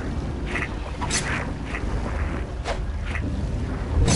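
Winged creatures screech.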